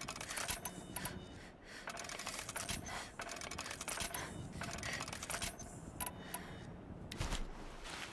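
Soft clicks tick as a menu is scrolled.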